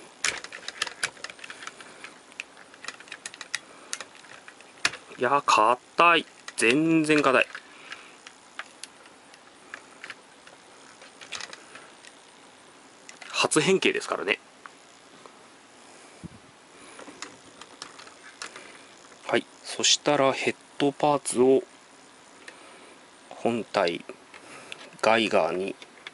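Plastic parts of a toy figure click and creak as hands move them.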